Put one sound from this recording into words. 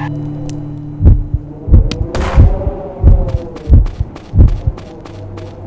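Game menu chimes and clicks sound.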